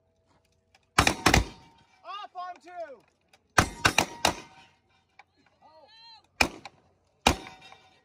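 Gunshots crack loudly outdoors, echoing across open ground.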